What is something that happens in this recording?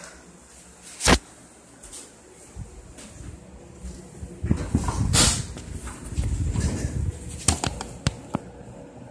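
Knocks and rustles sound as a microphone is handled.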